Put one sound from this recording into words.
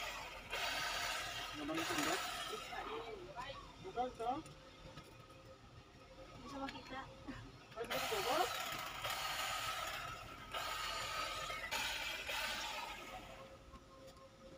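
A hedge trimmer buzzes in short bursts close by.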